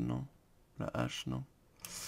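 A pickaxe chips at stone with repeated clicks.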